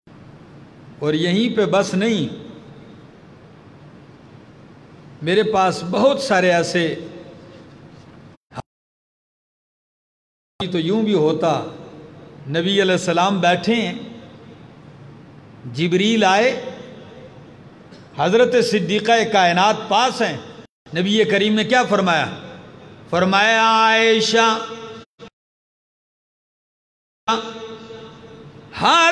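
A man speaks with feeling into a microphone, heard over a loudspeaker, in short bursts with pauses.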